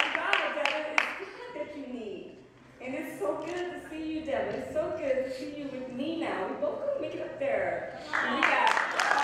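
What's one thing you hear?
A young woman speaks with emotion into a microphone over a loudspeaker.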